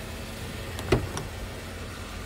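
A car door latch clicks open.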